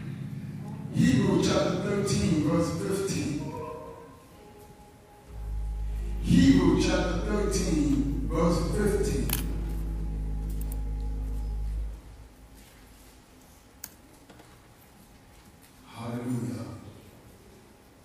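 A man speaks with feeling into a microphone, heard through loudspeakers in a large echoing hall.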